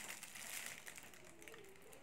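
A plastic bag crinkles close by.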